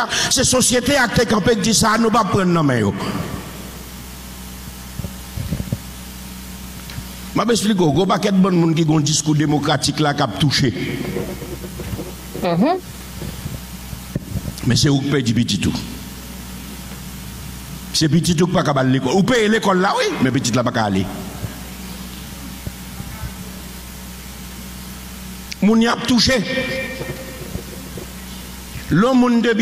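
A man preaches forcefully through a microphone in bursts, with pauses between.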